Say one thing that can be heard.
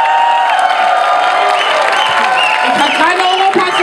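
A large crowd claps along.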